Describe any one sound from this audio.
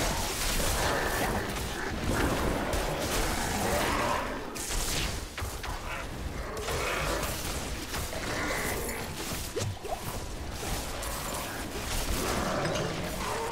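Magic lightning bolts crackle and zap.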